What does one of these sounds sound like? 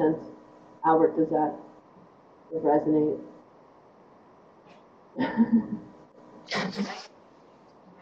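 A middle-aged woman speaks calmly in short phrases over an online call.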